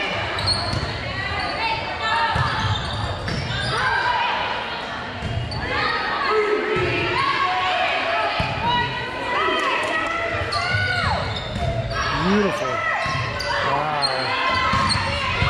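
Young women call out and shout to each other in a large echoing gym.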